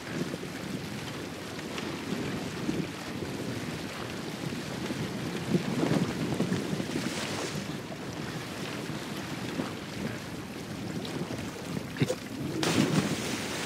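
Water laps and rushes against a wooden boat.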